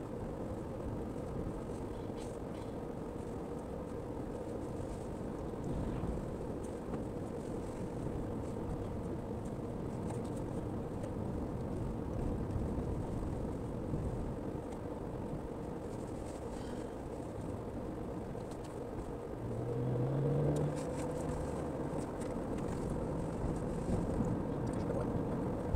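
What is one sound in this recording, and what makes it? Tyres roll on an asphalt road.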